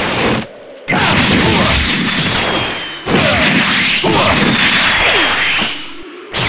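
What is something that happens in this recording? Punches and kicks land with heavy, rapid thuds.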